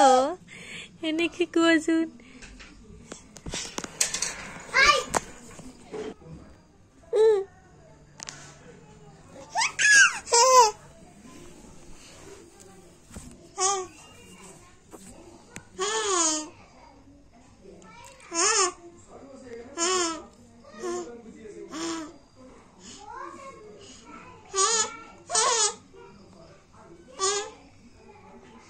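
A baby giggles and squeals close by.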